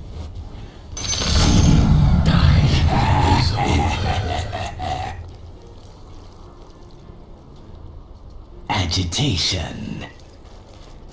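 Spells crackle and burst in a video game battle.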